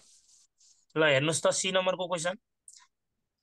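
A young man speaks briefly and calmly close to a microphone.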